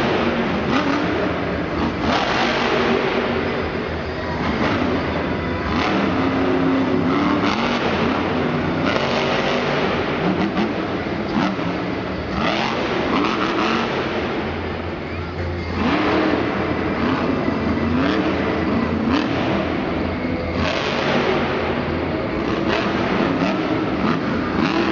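A monster truck engine roars and revs hard in a large echoing hall.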